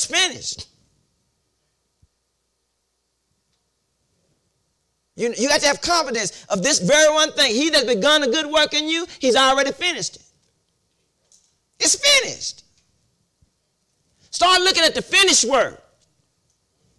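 A man preaches with animation into a microphone, pausing between phrases.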